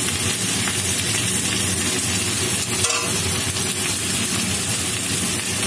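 Food sizzles steadily in hot oil in a pan.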